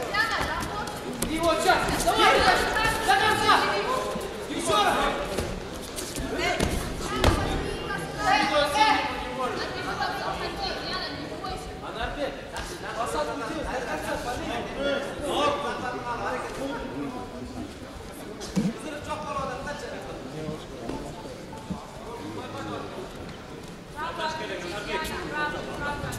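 A crowd in a large echoing hall cheers and shouts.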